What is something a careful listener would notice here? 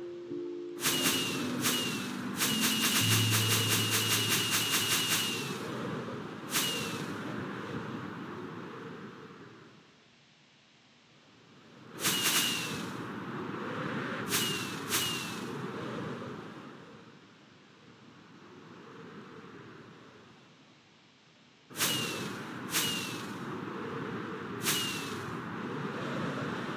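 Fireworks burst and crackle in the air.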